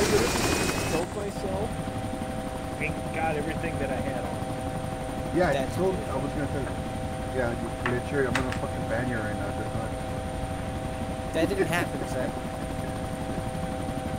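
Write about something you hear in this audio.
A helicopter engine drones steadily, heard from inside the cabin.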